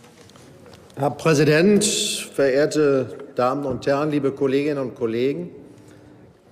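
An older man speaks into a microphone in a large hall.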